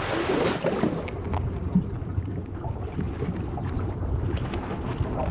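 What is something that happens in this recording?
Water churns and bubbles underwater, heard muffled.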